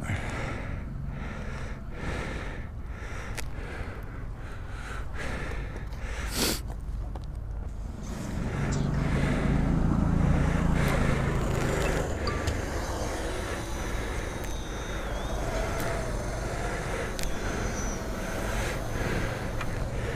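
Wind buffets a nearby microphone outdoors.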